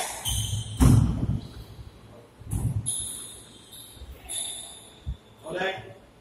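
A squash ball smacks hard against the walls, echoing through a large hall.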